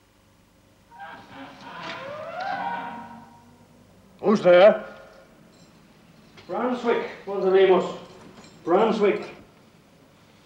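An elderly man speaks with feeling.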